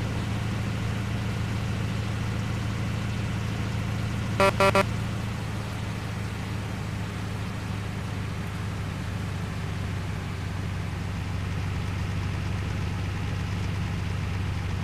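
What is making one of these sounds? A heavy truck engine hums steadily at a low pitch.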